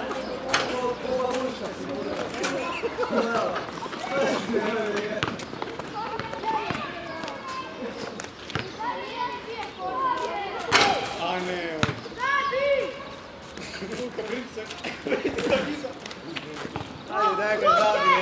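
A basketball bounces on hard ground.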